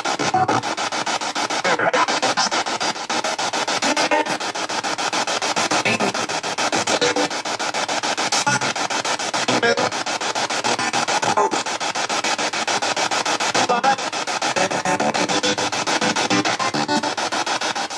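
A small radio rapidly sweeps through stations, giving out choppy bursts of static and broken sound.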